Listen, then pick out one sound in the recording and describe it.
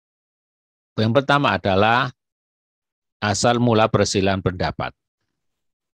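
A man speaks calmly into a microphone, as if on an online call.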